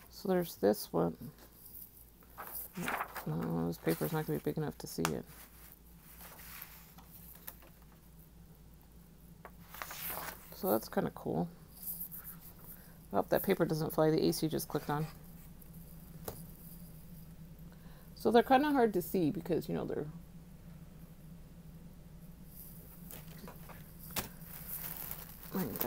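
Stiff plastic sheets rustle and clatter softly as they are handled.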